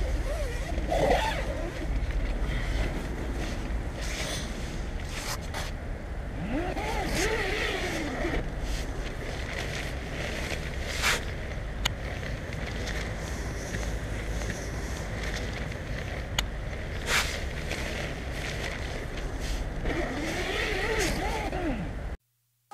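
A tent zipper zips open and closed with a rasping slide.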